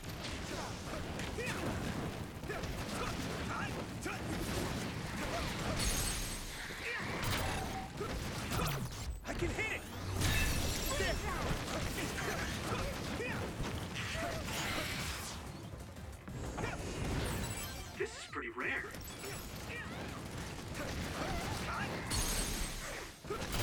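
Sword slashes and magic blasts clash in a fast fight.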